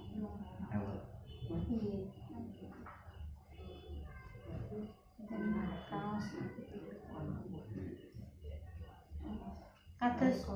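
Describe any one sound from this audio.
A young woman talks close by with animation.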